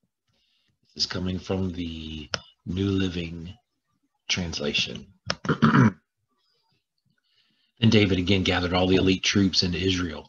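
A middle-aged man speaks calmly and closely into a microphone, in short bursts.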